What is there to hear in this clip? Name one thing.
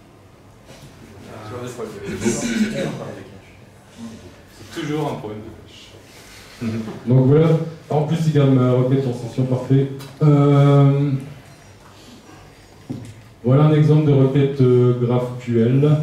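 A man speaks with animation through a microphone in a hall.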